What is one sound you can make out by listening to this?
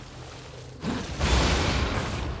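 A sword strikes a fiery creature with heavy blows.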